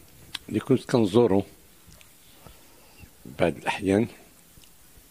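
An elderly man speaks calmly and in short bursts into a close microphone.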